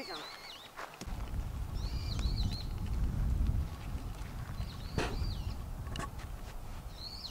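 Wind rumbles against the microphone outdoors.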